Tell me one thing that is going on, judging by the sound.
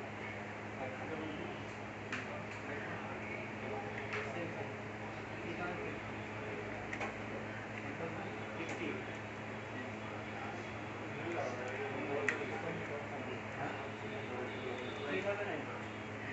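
A tripod's plastic parts click and clack as they are adjusted.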